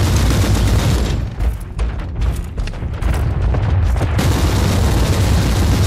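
Game combat sounds clash and boom with energy blasts and impacts.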